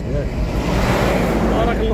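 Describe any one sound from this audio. A truck engine rumbles close by.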